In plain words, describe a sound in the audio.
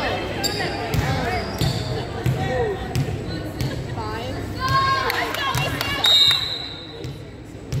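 Young women call out to each other across the court.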